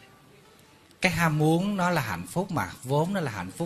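A middle-aged man speaks with animation through a microphone.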